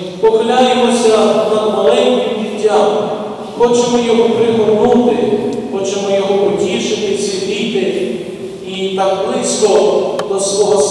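A man chants in a steady sung voice through a microphone, echoing in a large hall.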